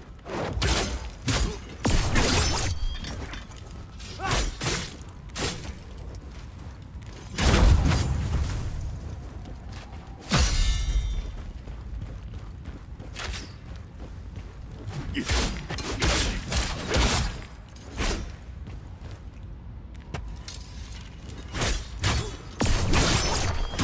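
Blades slash and strike hard in quick bursts.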